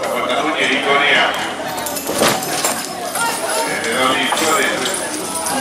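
Horses' hooves thud on soft dirt.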